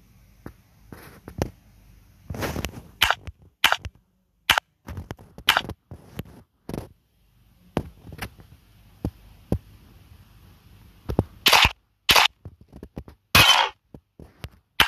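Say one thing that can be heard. Short interface clicks and swooshes sound now and then.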